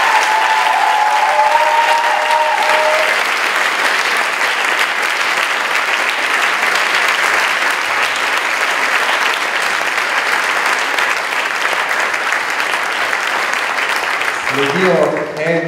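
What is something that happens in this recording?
A large audience applauds loudly in a hall.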